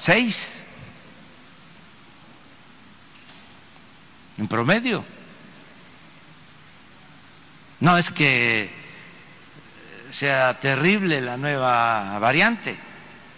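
An elderly man speaks slowly into a microphone, with long pauses, in a large echoing hall.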